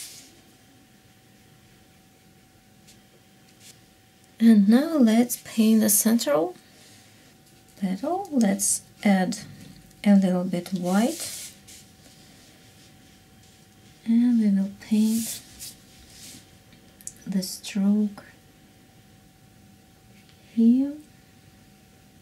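A paintbrush softly strokes across paper.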